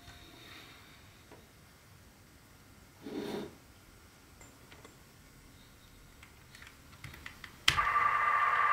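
Hands click and handle a small tape player.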